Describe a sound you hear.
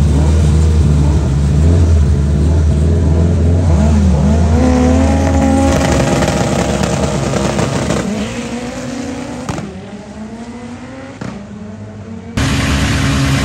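A drag racing car's engine rumbles loudly and revs at the start line.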